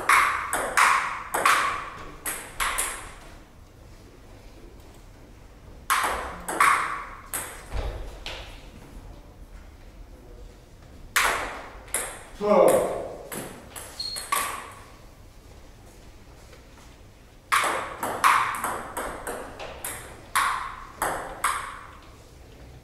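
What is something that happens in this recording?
A ping pong ball clicks back and forth between paddles and the table in quick rallies.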